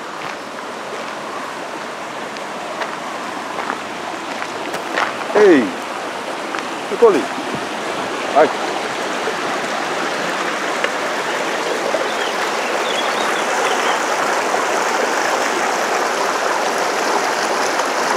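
A stream rushes and splashes over rocks nearby.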